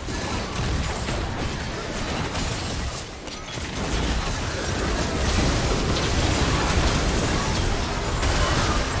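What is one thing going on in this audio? Magic blasts and explosions crackle and boom in a fast game battle.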